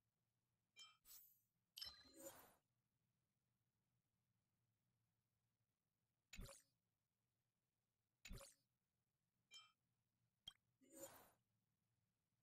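Short electronic chimes and whooshes sound as menu selections change.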